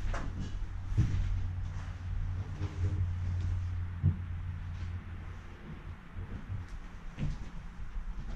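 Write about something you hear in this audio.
Footsteps thud and crunch on a cluttered wooden floor.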